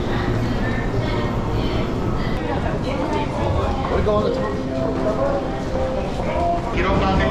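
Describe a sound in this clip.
A crowd murmurs in an echoing underground concourse.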